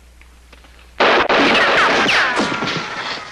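An explosion booms loudly in an echoing tunnel.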